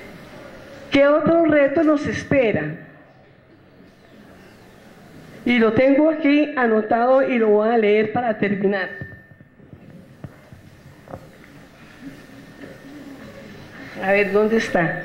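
A woman speaks with animation into a microphone, amplified through loudspeakers in a large room.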